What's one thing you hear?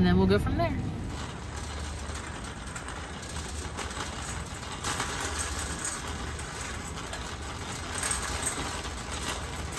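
A shopping cart rolls and rattles over a smooth floor.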